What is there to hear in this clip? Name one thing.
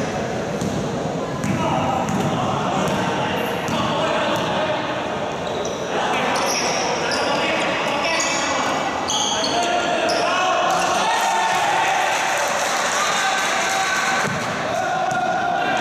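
Young men call out to each other in a large echoing hall.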